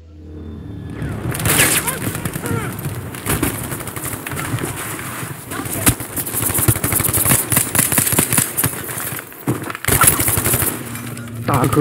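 Rapid gunshots crack and echo.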